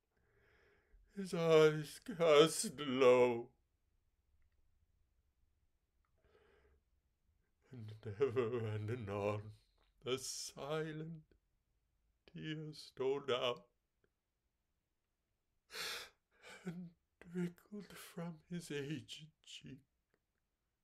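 A middle-aged man speaks calmly and close to a microphone, with pauses.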